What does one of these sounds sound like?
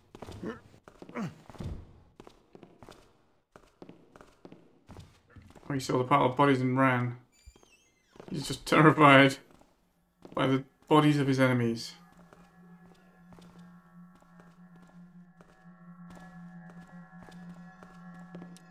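Footsteps walk on a stone floor.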